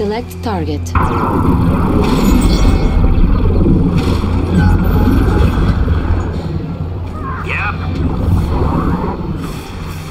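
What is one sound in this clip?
Weapons fire and explosions rumble in a battle.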